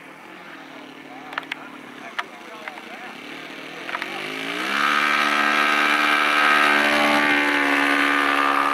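A model airplane engine buzzes, then revs up to a loud, steady high whine.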